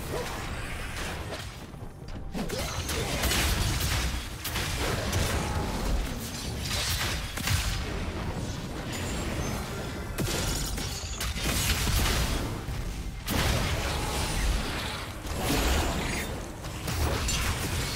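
Magic spells whoosh and crackle as characters battle in a video game.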